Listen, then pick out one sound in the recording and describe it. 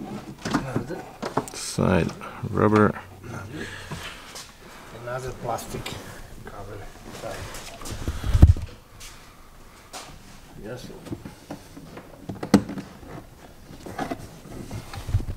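Plastic trim clicks and knocks as hands work at a car seat.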